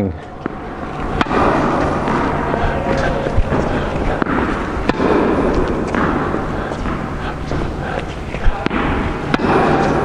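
A tennis racket strikes a ball with sharp pops in an echoing indoor hall.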